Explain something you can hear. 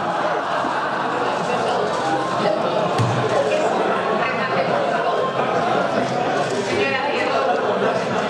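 A woman speaks loudly and with animation into a microphone in a large echoing hall.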